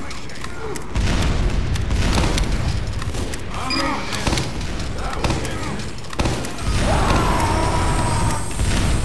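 A heavy rotary gun fires in rapid, rattling bursts.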